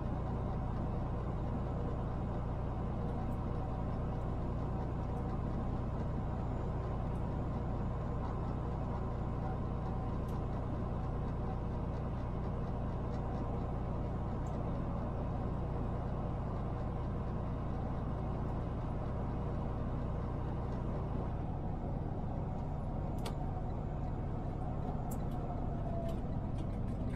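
A truck engine drones steadily while cruising on a highway.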